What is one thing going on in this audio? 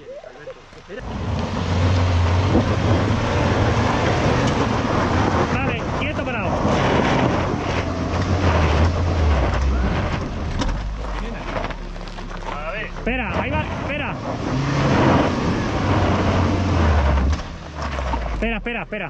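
An off-road vehicle's engine rumbles and strains as it climbs slowly.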